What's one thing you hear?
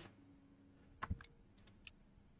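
A soft menu click sounds.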